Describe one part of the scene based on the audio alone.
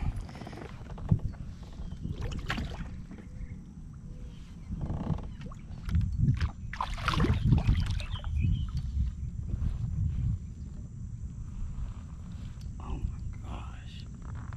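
Water splashes as a fish thrashes beside a kayak.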